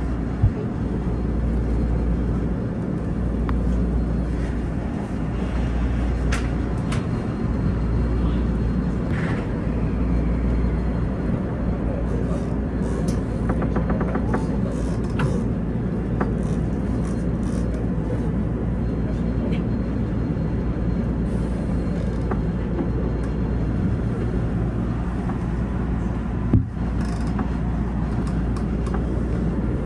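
A train rumbles steadily along the track, heard from inside its cab.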